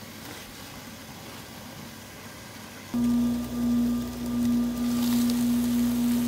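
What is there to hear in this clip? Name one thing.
A glass lid clinks as it is lifted off a grill.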